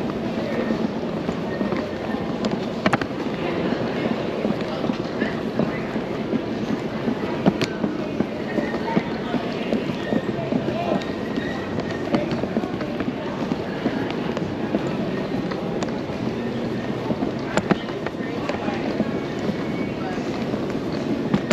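A crowd murmurs faintly in a large, echoing hall.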